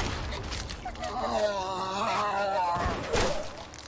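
A zombie snarls and groans.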